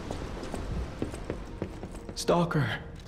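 Footsteps thud quickly on a wooden floor.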